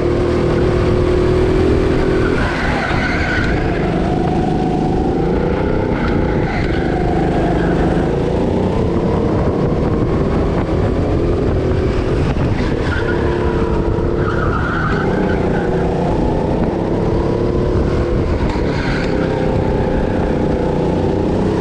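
A go-kart engine revs hard, its pitch rising and falling through the corners, echoing in a large indoor hall.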